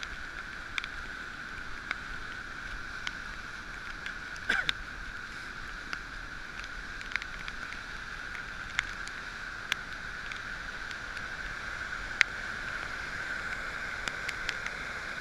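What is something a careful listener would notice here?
A swollen river rushes and roars nearby.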